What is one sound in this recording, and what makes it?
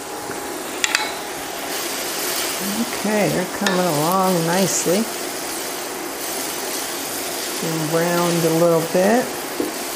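Onions sizzle softly in a hot pan.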